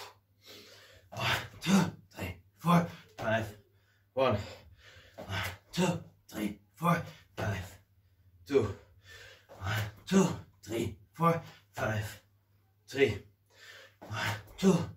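Feet and hands thump on a floor in a quick, steady rhythm.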